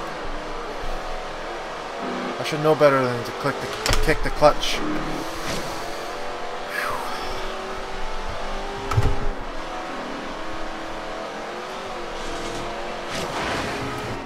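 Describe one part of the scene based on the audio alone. A racing car engine roars and revs higher as the car speeds up.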